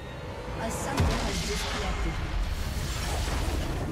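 A game's magic blast bursts with a loud whoosh.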